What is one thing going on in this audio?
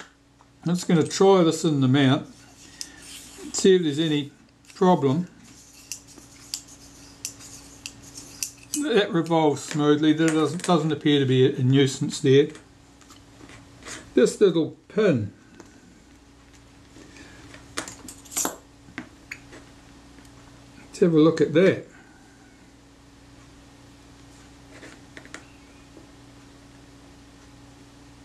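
Small metal parts click and tap softly as they are handled.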